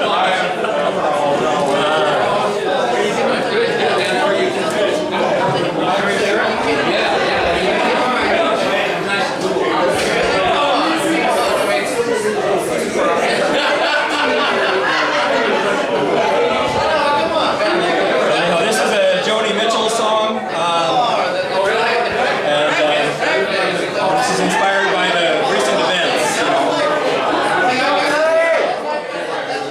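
An elderly man sings loudly through a microphone and loudspeakers in an echoing room.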